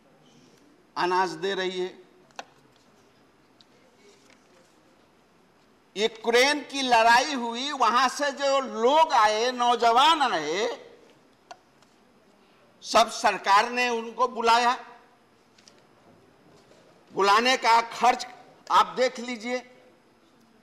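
An elderly man speaks forcefully into a microphone in short bursts.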